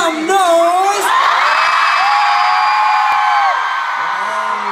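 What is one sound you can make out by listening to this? A large crowd screams and cheers.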